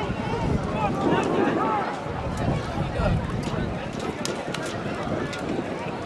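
A crowd of spectators chatters close by.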